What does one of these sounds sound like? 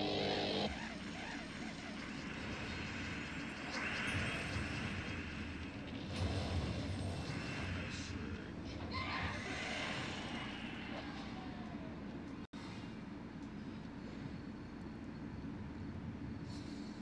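Game music plays steadily with chiming effects.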